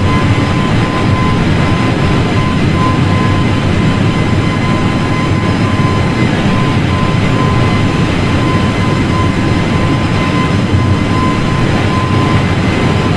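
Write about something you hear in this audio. Jet engines roar steadily as an airliner flies.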